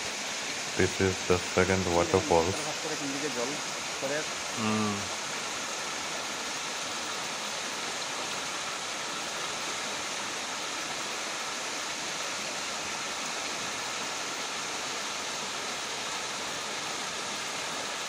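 A small waterfall splashes steadily into a pool.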